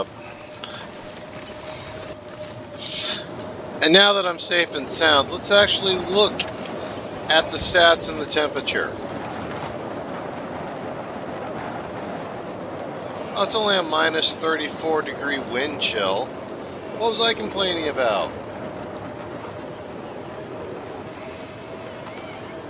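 Strong wind howls steadily in a blizzard.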